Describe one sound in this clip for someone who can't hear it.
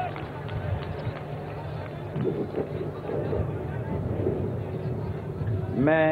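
A large crowd cheers and murmurs outdoors.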